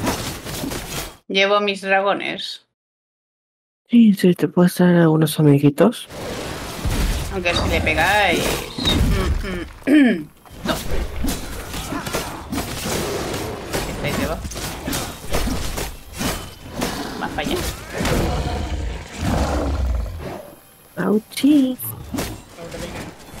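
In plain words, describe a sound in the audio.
A young man speaks with animation into a close microphone.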